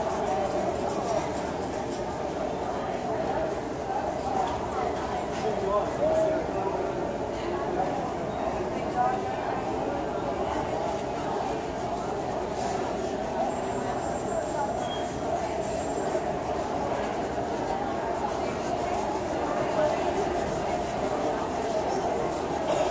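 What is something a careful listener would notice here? A pencil scratches and shades on paper.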